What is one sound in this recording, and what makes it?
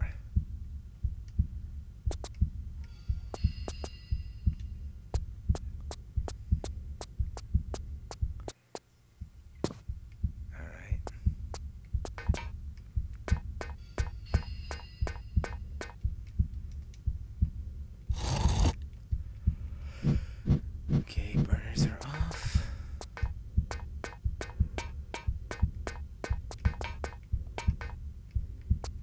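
Quick footsteps slap on a hard floor.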